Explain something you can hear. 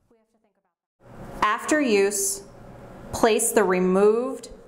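A woman speaks calmly through a face mask, close by.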